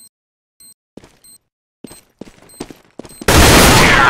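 Footsteps sound on a concrete floor.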